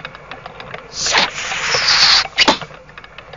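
A dart whooshes through the air.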